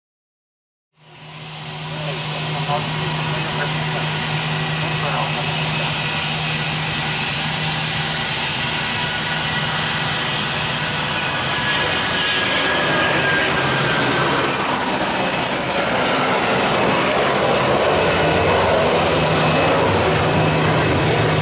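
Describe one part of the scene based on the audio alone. A jet engine roars loudly as an aircraft takes off and climbs away.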